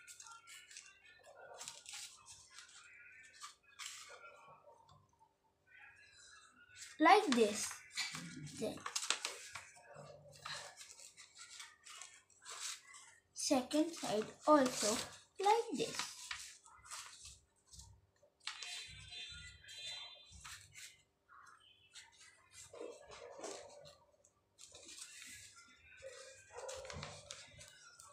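Paper rustles and crinkles as it is folded close by.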